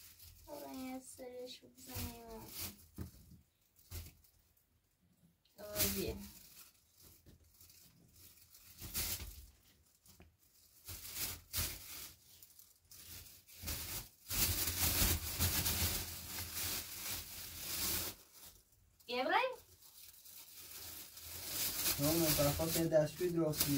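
Vegetables rustle and knock in a plastic crate.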